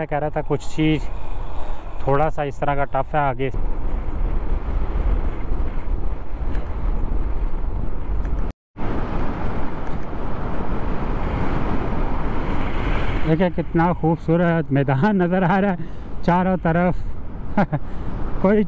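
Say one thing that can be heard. A motorcycle engine rumbles steadily while riding over rough ground.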